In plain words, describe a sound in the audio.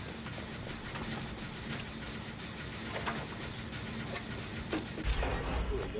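Metal parts rattle and clank as an engine is worked on.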